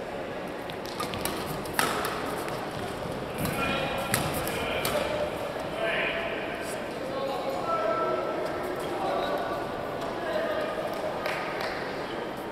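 Shuttlecocks are struck with rackets, giving sharp pops.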